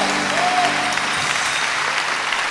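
An orchestra plays a final chord.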